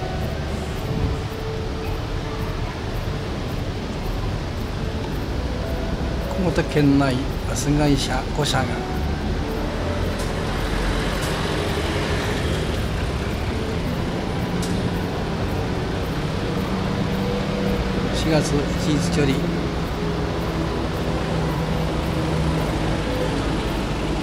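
Steady traffic noise hums outdoors.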